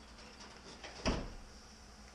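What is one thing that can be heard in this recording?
A heavy thud sounds against a car body.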